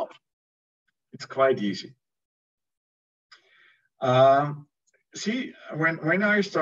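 A middle-aged man speaks calmly over an online call, with pauses.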